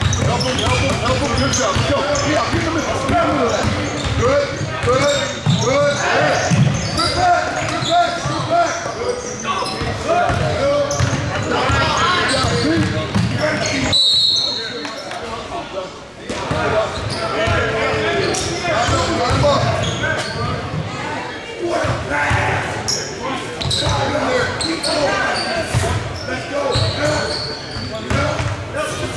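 Many voices chatter and call out in a large echoing gym.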